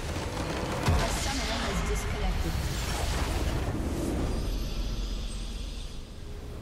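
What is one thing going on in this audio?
A large crystal explodes with a deep roar.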